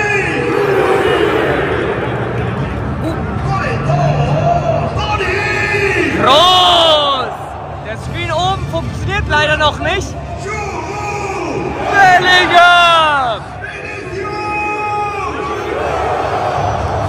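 A huge stadium crowd sings and chants loudly, echoing around the stands.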